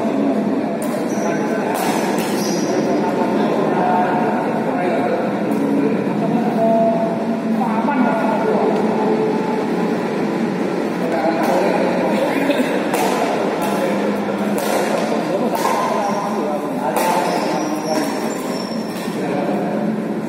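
Shuttlecocks are hit with rackets in a large echoing hall.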